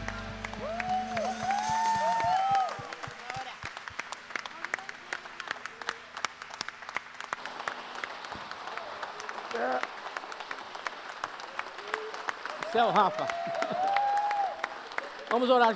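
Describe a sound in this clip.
Singers sing into microphones.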